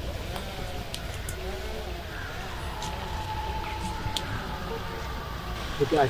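Leaves rustle underfoot.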